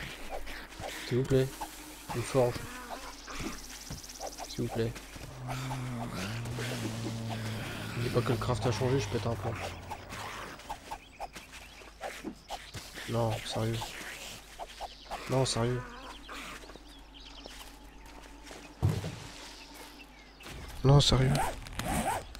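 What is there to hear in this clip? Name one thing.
A young man speaks close to a microphone, calmly and in short bursts.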